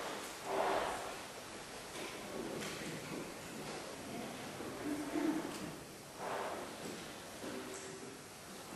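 A brass ensemble plays in a large echoing hall.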